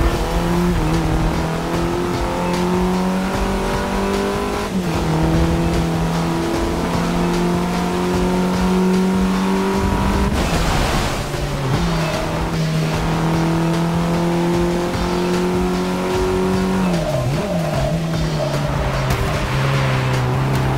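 A car engine roars steadily, dropping in pitch briefly at each gear change.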